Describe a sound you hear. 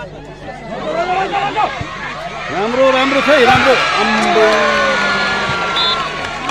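A crowd cheers loudly and excitedly.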